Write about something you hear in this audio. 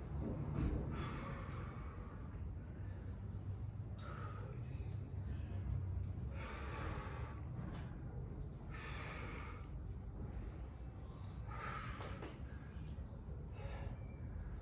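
A man exhales forcefully with each lift.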